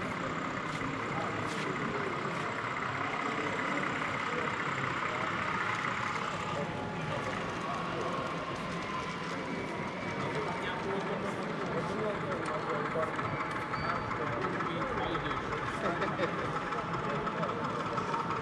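A model train hums and clatters along its track.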